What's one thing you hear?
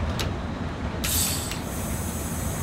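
Air brakes release with a sharp hiss.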